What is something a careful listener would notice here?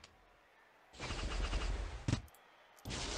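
Game gems shatter with a bright burst of chimes.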